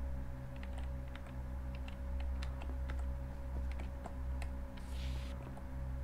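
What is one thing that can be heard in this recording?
Quick light footsteps patter steadily.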